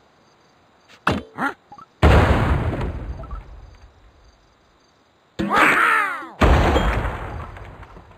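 Game pieces pop and burst with bright chimes.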